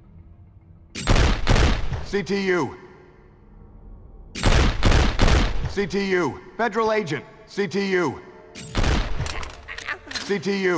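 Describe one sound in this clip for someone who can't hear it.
Gunshots fire in short rapid bursts, each followed by a ringing echo.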